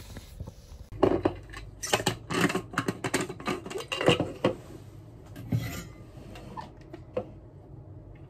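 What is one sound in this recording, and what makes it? A plastic cup clicks and rattles as it is handled.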